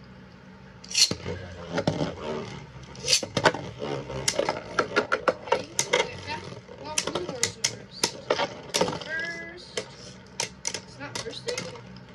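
Spinning tops clatter and clash against each other in a plastic arena.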